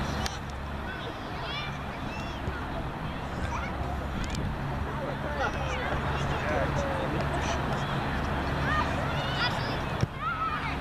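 Young girls shout and call to each other from across an open field.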